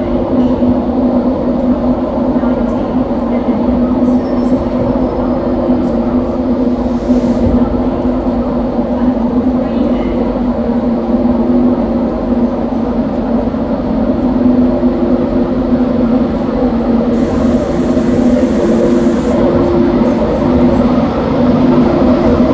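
An electric locomotive hums loudly with a steady drone as a train pulls slowly out.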